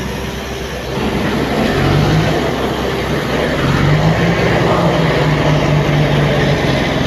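A truck engine revs louder as a truck pulls away.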